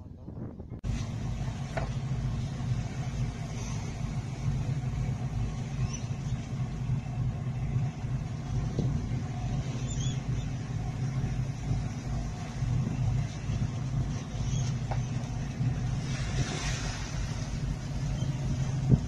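A boat engine rumbles steadily nearby.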